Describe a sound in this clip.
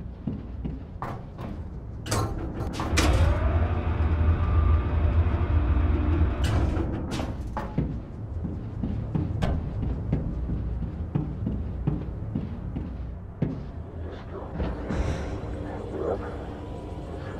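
A machine engine hums and rumbles steadily.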